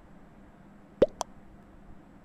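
A short electronic blip sounds as a chat message is sent.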